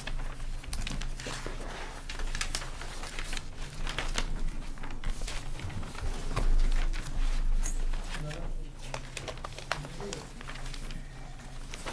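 Papers rustle close to a microphone.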